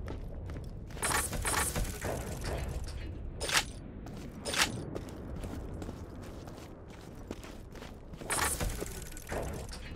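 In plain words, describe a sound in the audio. A metal crate lid clanks open.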